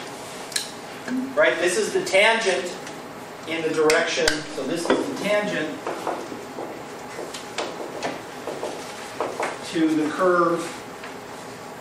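A middle-aged man lectures, speaking up.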